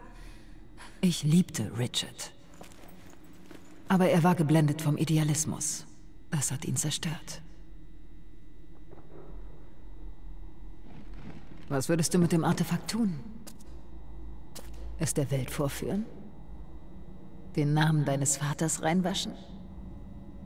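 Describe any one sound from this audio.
A young woman speaks calmly and quietly, close by.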